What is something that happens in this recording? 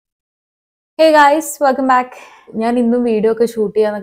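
A young woman talks closely to a microphone with animation.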